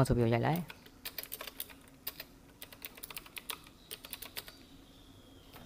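Keyboard keys click quickly as someone types.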